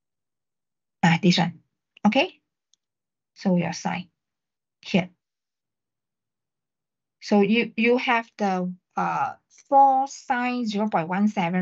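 A young man speaks calmly over an online call, in short bursts.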